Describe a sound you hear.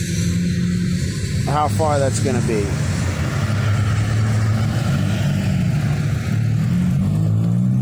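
A truck engine idles with a low, steady rumble nearby.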